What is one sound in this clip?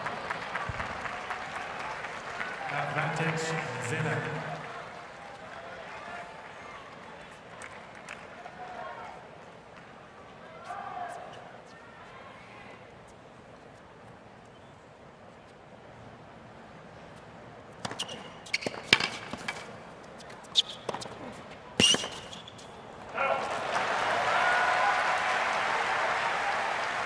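A crowd cheers and applauds in a large stadium.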